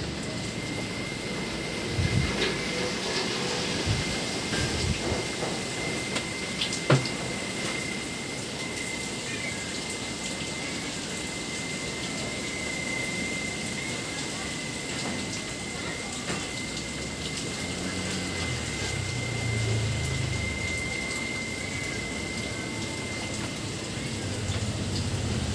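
Steady rain patters on leaves outdoors.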